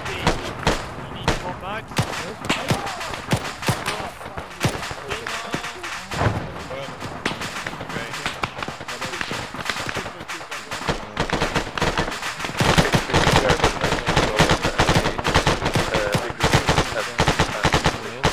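Rifles fire in rapid bursts outdoors.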